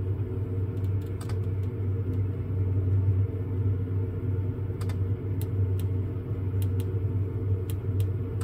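Buttons click softly as a finger presses them.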